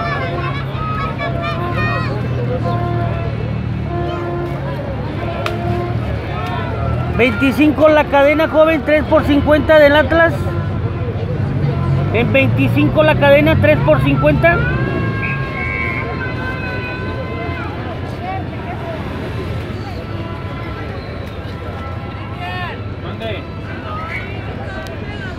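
A large crowd sings and chants in the distance outdoors.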